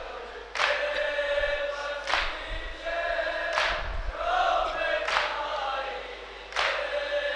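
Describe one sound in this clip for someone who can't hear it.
Young men beat their chests in a slow, steady rhythm.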